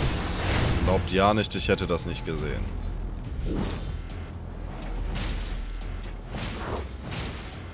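Blades slash and clang against armour.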